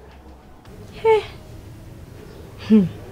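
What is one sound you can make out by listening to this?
A woman speaks briefly close by.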